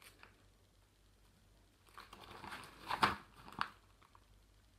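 Pages of a spiral book rustle as they are turned.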